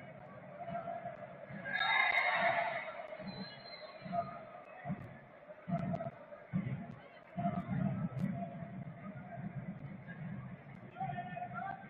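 A large crowd in a stadium chants and murmurs steadily.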